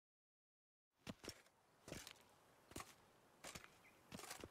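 Footsteps crunch on a stone path.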